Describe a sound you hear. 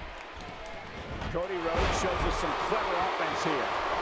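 Wrestlers thud onto a ring mat.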